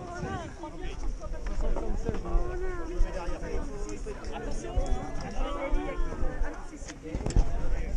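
People talk and shout in the distance outdoors.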